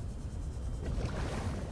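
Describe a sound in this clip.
Bubbles fizz and hiss briefly.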